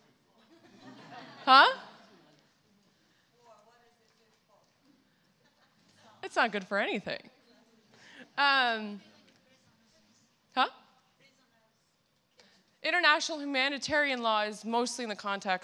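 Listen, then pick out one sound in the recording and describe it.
A woman speaks into a microphone in short, lively phrases with pauses.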